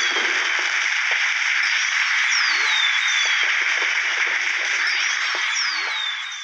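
Bowling pins clatter as a car crashes into them.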